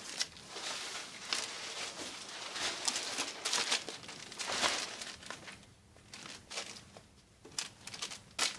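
Packages are set down on a table with soft thuds.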